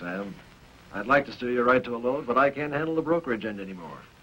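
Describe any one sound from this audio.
Another middle-aged man answers nearby.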